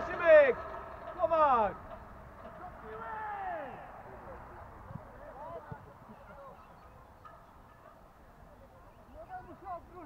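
Young men shout across an open field in the distance.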